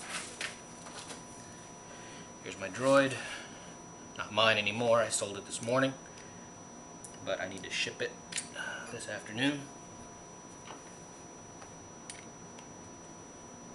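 Hard plastic parts click and rattle as they are handled.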